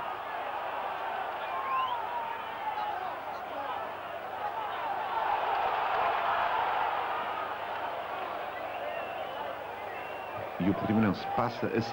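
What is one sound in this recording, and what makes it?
A large crowd murmurs and whistles in an open stadium.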